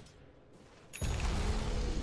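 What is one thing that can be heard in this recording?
A magical spell bursts with a sharp whoosh.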